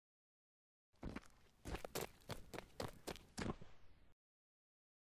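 Footsteps patter on gravel.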